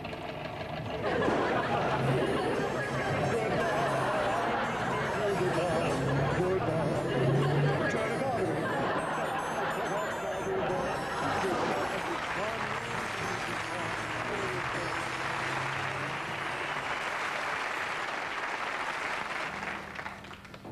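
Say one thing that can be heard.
A harpsichord plays a lively tune.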